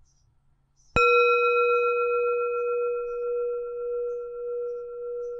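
Small hand cymbals strike together and ring on with a long, bright, fading tone.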